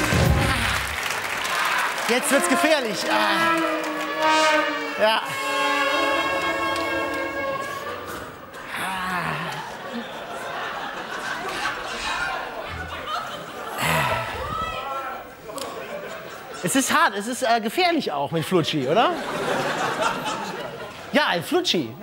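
A man talks loudly and with animation, laughing and shouting.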